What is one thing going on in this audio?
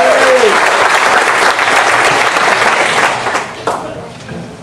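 An audience applauds loudly in a large hall, then the applause dies away.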